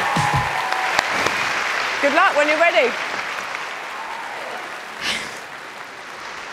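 An audience cheers and applauds in a large hall.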